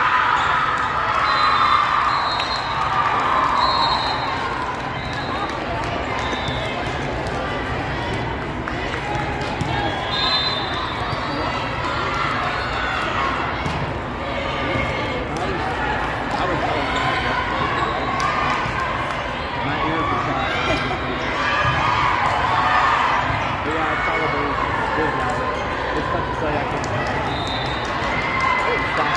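A crowd of people chatters steadily in a large echoing hall.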